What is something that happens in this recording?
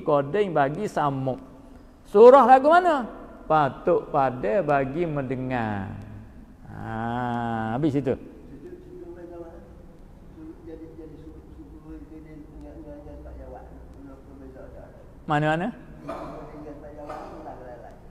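An elderly man chants and preaches into a microphone, his voice carrying in a reverberant room.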